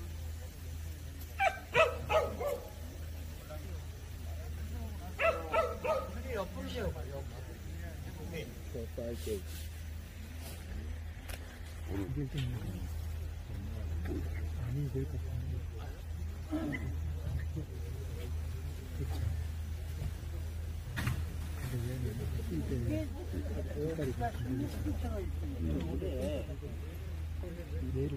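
A crowd of adults talks and murmurs nearby outdoors.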